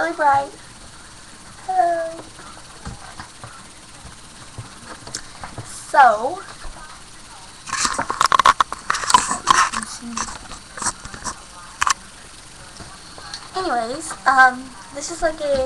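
A young girl speaks and exclaims excitedly close to a microphone.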